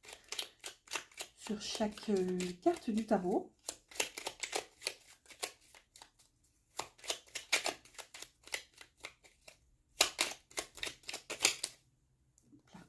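Playing cards are shuffled with quick, crisp flicks.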